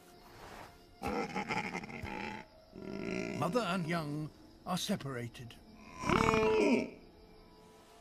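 A large plant-eating dinosaur calls.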